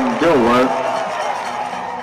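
Young men shout and celebrate.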